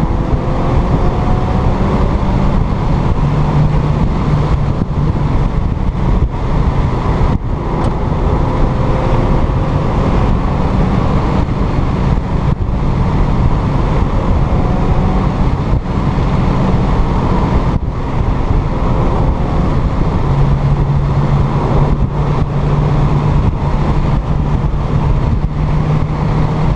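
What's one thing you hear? A car engine roars loudly as it accelerates and shifts gears.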